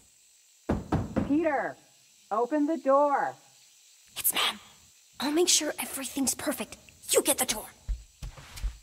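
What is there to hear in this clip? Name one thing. A young woman whispers nearby.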